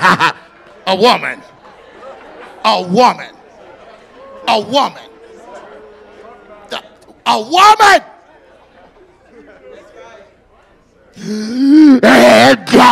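A man speaks loudly and with animation through a microphone in a large echoing hall.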